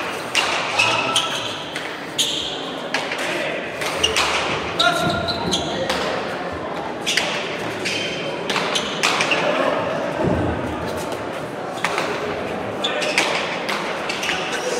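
A hard ball smacks sharply against walls and hands, echoing loudly in a large hall.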